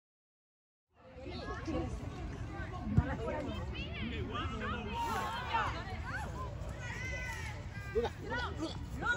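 Young girls shout and call out to each other outdoors.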